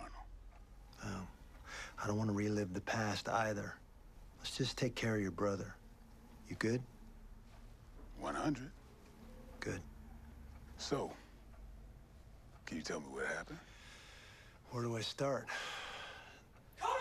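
A man speaks calmly in a low, gravelly voice.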